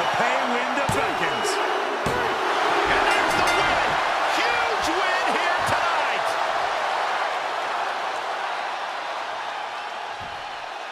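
A large crowd cheers loudly, then slowly fades.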